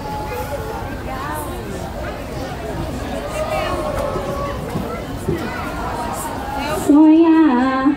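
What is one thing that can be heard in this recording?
Children and adults chatter in a crowd.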